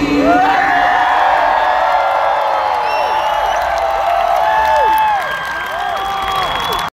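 A woman sings with long, sliding notes through loud speakers in a large hall.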